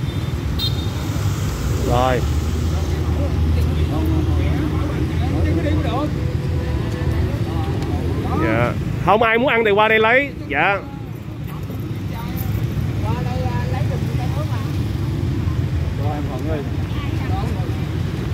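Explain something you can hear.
Traffic rumbles steadily outdoors on a street.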